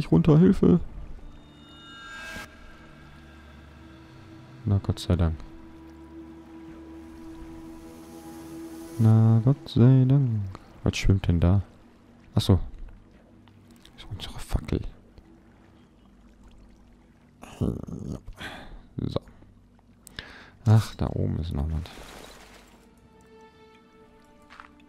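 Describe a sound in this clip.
Water trickles and splashes steadily.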